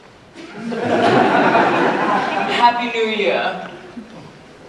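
An audience laughs in a large hall.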